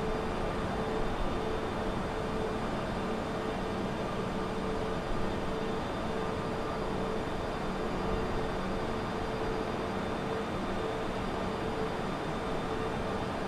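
Jet engines roar steadily with a constant whooshing rush of air.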